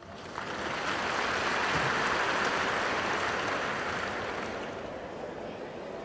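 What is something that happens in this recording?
A large crowd applauds, then the applause fades away.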